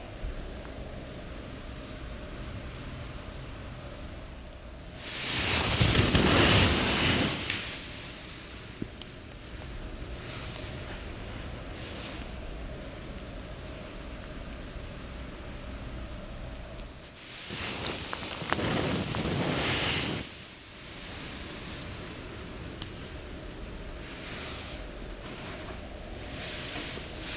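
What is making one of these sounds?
Hands rub and slide over oiled skin with a soft swish.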